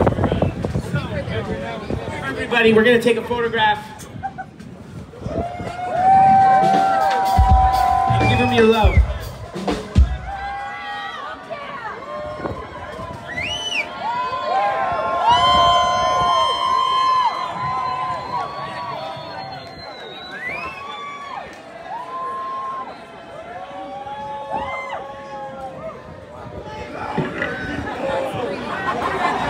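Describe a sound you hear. A live band plays loudly through loudspeakers outdoors.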